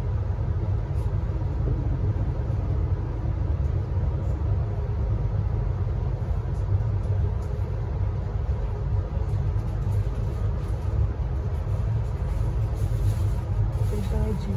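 A train rumbles steadily along an elevated track.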